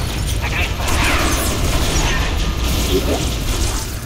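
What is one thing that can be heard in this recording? Energy weapons fire with sharp electric zaps.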